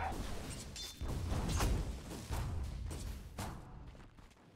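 Swords clash and strike repeatedly.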